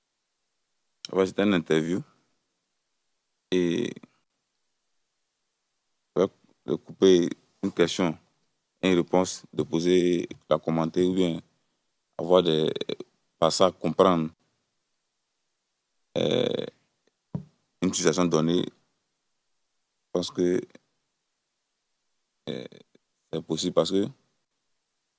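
A young man speaks calmly into a microphone, pausing often.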